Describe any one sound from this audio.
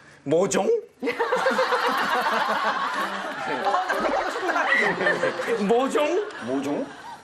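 Several young people laugh and talk over each other.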